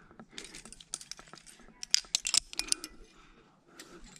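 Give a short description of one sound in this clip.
A metal carabiner clicks and clinks as it is clipped.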